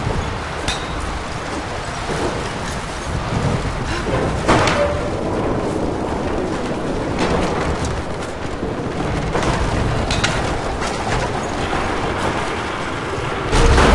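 A wooden crank creaks and ratchets as it is turned.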